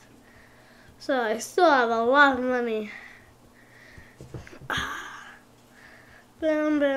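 A young boy speaks with animation close to a microphone.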